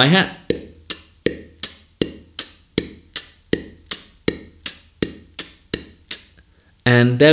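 A man beatboxes a quick, dry kick drum rhythm close to a microphone.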